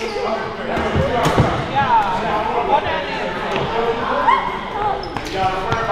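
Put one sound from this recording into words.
Players' voices call out and echo in a large hall.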